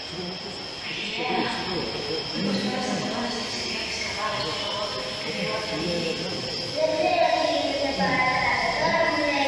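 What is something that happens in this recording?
A woman sings through loudspeakers.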